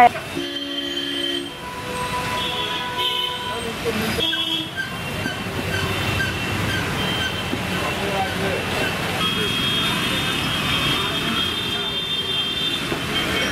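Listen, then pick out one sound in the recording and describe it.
Horns beep in passing traffic.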